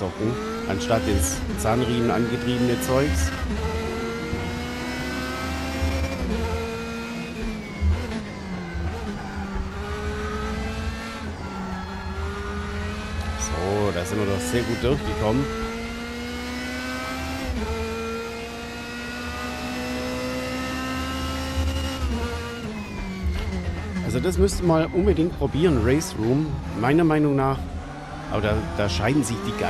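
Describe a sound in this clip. A race car engine roars and revs up through the gears, dropping in pitch at each shift.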